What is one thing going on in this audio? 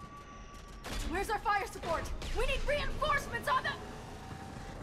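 A woman shouts urgently over a radio.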